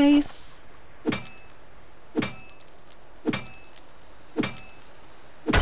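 A pickaxe strikes rock with sharp metallic clinks at a steady pace.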